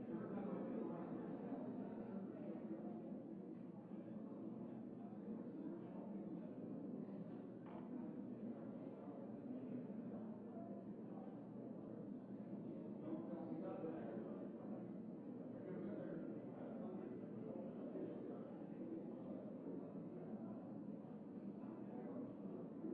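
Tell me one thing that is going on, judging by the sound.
Many men and women murmur and chat quietly in a large echoing hall.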